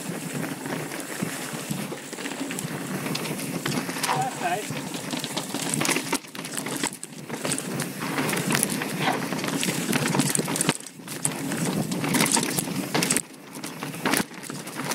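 Bicycle tyres crunch and rattle over rough rocky ground.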